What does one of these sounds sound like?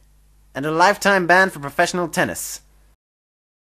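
A man speaks with animation, close up.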